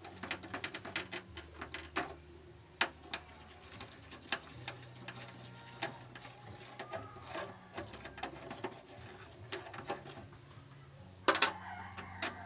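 Metal tongs clink and tap against a small pot.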